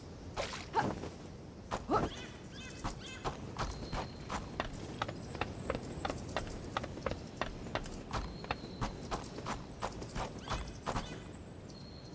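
Footsteps knock on wooden planks at a steady pace.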